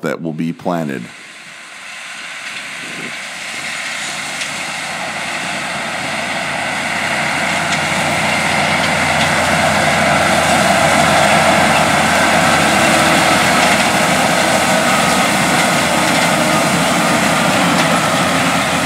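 A tillage implement rattles and scrapes through dry crop stubble.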